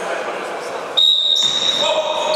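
A referee blows a loud whistle.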